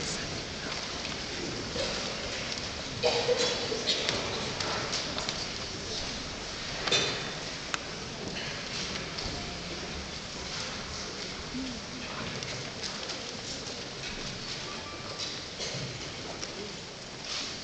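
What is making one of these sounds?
An audience murmurs and rustles in a large echoing hall.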